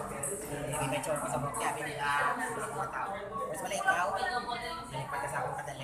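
Young people chatter and talk nearby.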